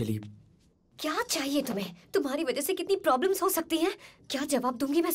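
A young woman speaks sharply and with emotion, close by.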